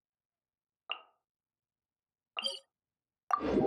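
Menu clicks chime softly.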